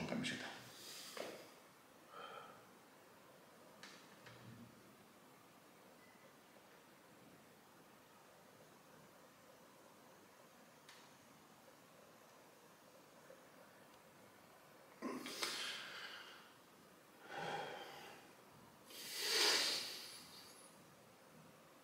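A young man pants and breathes heavily close by.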